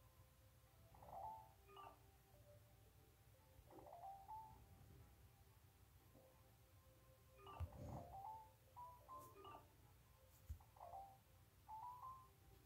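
Short electronic chimes ring out as letters are picked.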